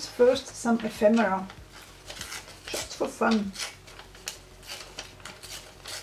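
Paper tears in small strips.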